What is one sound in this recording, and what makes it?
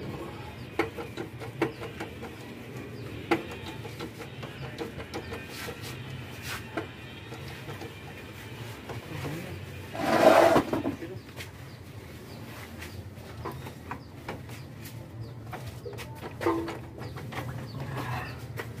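Metal tools clink and tap against engine parts.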